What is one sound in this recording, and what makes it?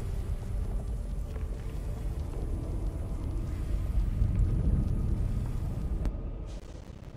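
Thunder rumbles deeply, swelling and then cutting off.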